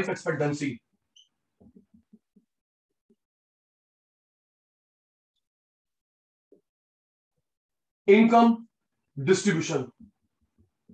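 A man speaks calmly and close up, as if lecturing.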